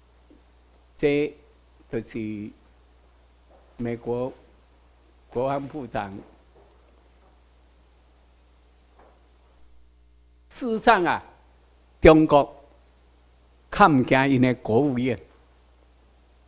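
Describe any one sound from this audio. An older man speaks with animation through a microphone, in short bursts with pauses.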